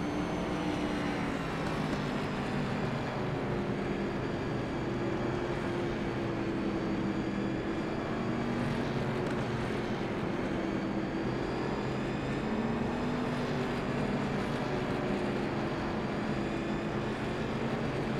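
A race car engine roars steadily at high speed, its pitch rising and falling slightly.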